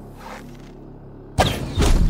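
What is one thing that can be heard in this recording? A bowstring creaks as it is drawn.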